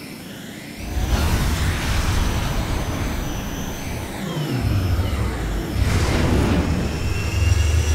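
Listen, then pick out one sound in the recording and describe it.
A spaceship engine roars with a deep, steady rumble.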